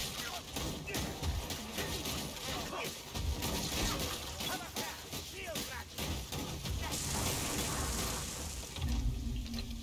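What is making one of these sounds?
Blades slash and thud into snarling creatures.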